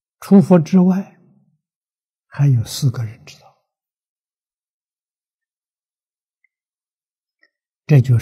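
An elderly man speaks calmly into a microphone, in short phrases with pauses.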